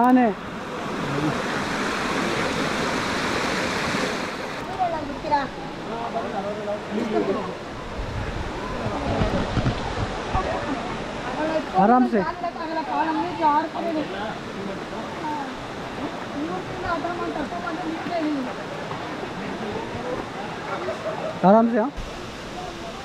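Shallow stream water rushes over rocks.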